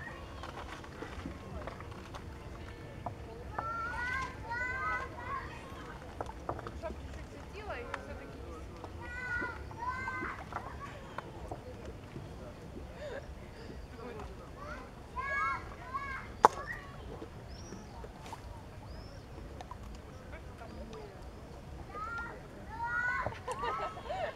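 Small ripples lap softly at the water's edge.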